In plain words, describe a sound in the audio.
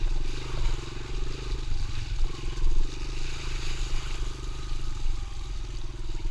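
A dirt bike engine drones steadily close by, rising and falling as it rides.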